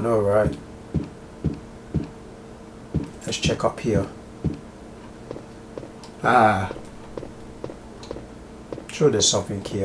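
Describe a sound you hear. Footsteps thud steadily on wooden stairs and floorboards.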